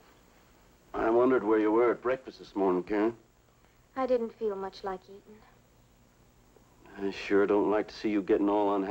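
A man speaks warmly and gently, close by.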